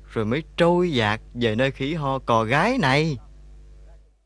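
A young man pleads in a tearful, choked voice close by.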